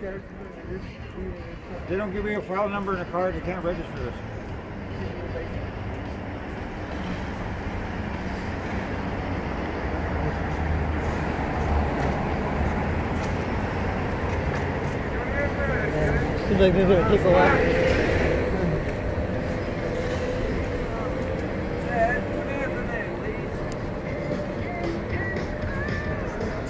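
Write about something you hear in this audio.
Traffic hums steadily on a city street outdoors.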